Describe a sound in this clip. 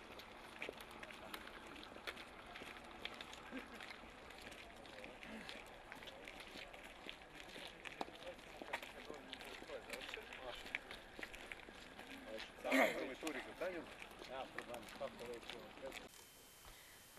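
Footsteps crunch on gravel as a group walks outdoors.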